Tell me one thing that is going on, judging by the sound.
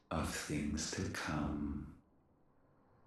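A deep, menacing voice speaks slowly.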